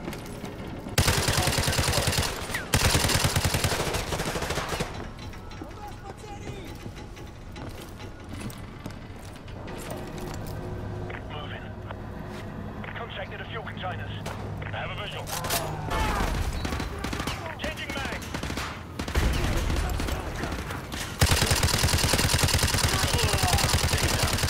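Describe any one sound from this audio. Rapid automatic gunfire rattles loudly in bursts.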